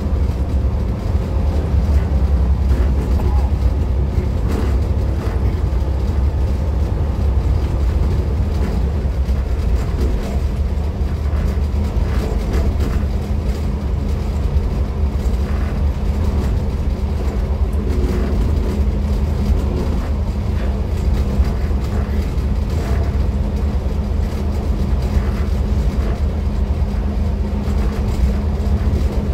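Train wheels clack over rail joints now and then.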